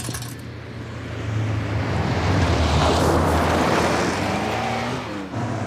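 Tyres crunch over a dirt road.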